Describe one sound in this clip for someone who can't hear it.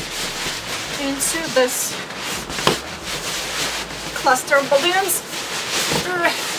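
Rubber balloons squeak sharply as they rub together.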